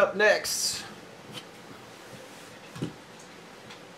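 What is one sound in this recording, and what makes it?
A plastic card holder is set down on a table with a soft tap.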